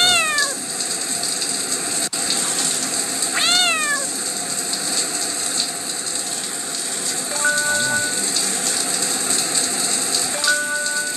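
Water sprays steadily from a shower head into a bath.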